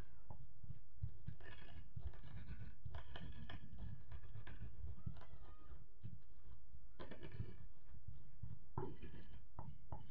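A stone pestle pounds and grinds in a clay mortar with dull, repeated thuds.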